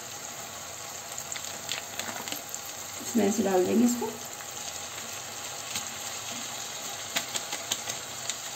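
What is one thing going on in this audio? A spatula scrapes and clatters against a pan.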